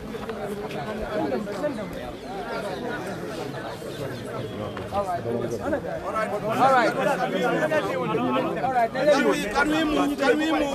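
A crowd of men talk over one another close by, outdoors.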